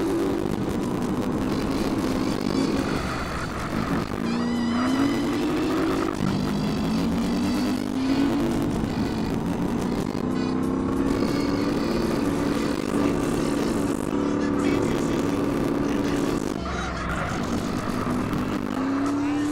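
A motorcycle engine roars steadily, rising and falling in pitch as it speeds up.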